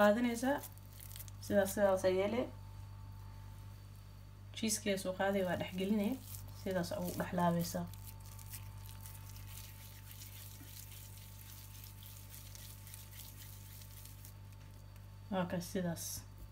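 Hands squeeze and pat soft minced meat into a ball.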